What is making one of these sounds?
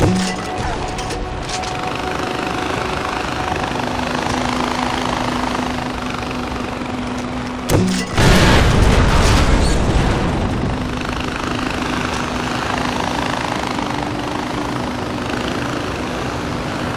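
A trolley whirs steadily along a zipline cable.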